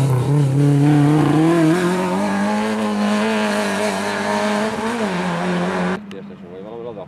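A rally car engine roars loudly at high revs as the car speeds past.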